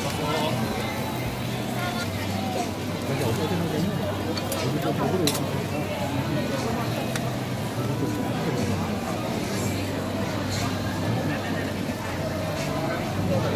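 A metal spatula scrapes and taps against a griddle.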